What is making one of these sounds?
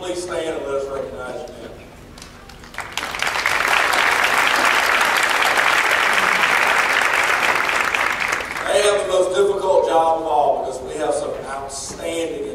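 A man speaks calmly through a loudspeaker in a large echoing hall.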